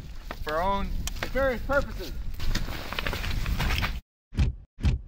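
Snow crunches underfoot.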